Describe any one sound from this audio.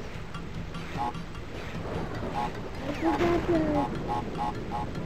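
Bright little chimes ring out in quick succession.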